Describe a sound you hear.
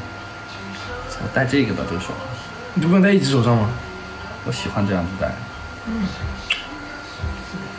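A young man speaks softly close by.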